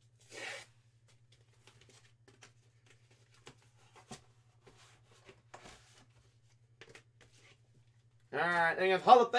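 Paper and card rustle in a man's hands.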